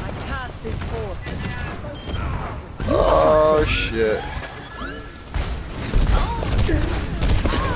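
Explosions boom in quick bursts.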